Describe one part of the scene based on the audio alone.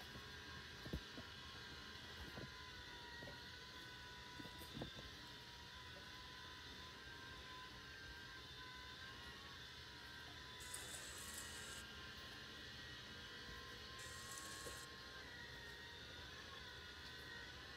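A robot vacuum hums and whirs steadily.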